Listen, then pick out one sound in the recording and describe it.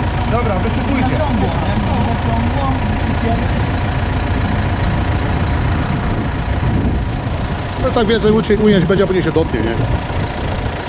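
A man talks nearby in a relaxed voice.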